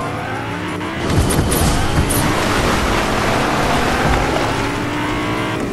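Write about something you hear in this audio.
Water splashes as a car drives through it.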